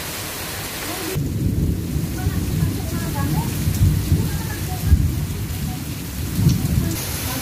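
Rain patters softly on umbrellas.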